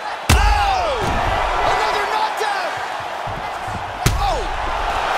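A heavy punch lands with a sharp thud.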